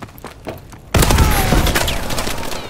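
Gunshots fire in a video game.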